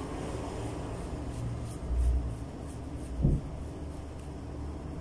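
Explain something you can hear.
A small razor scrapes softly across skin in short strokes.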